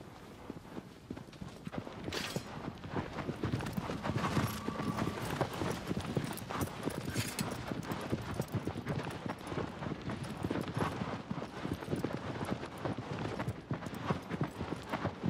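A horse gallops, its hooves thudding quickly on soft ground.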